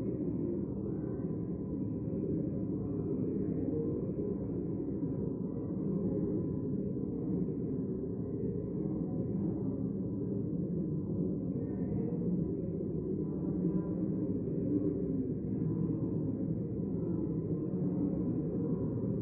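Many men and women murmur and chat quietly in a large echoing hall.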